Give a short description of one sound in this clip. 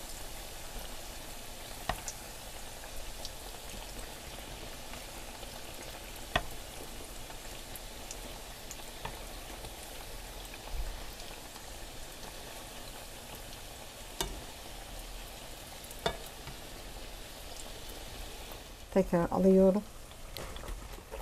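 Oil sizzles and crackles steadily in a frying pan.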